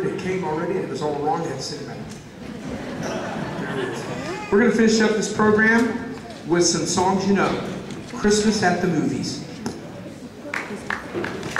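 A saxophone section plays a tune in a large echoing hall.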